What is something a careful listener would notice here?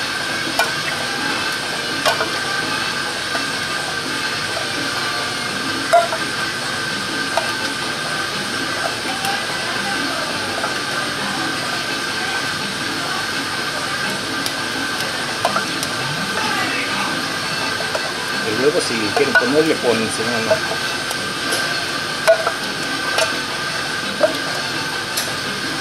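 A ventilation fan hums steadily.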